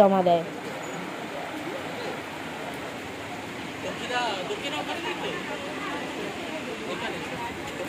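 A crowd of women and men chatters nearby outdoors.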